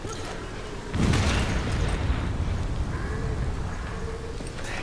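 An explosion booms loudly and rumbles as it fades.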